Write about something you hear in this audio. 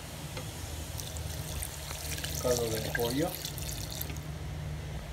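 Liquid pours and splashes into a glass jar.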